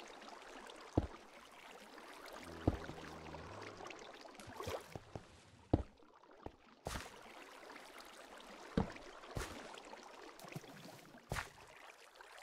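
Stone blocks are placed with short dull knocks.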